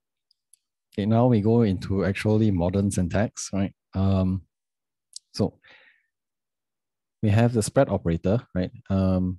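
A young man speaks calmly and closely into a microphone.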